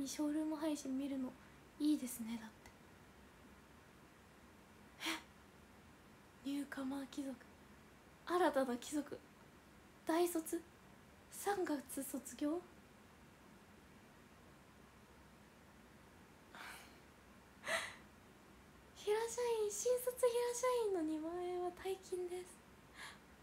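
A young woman talks with animation in bursts, close to a microphone.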